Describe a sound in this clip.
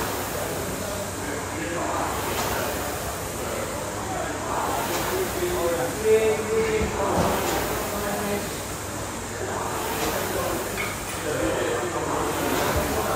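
An air rowing machine whooshes with each pull of the stroke.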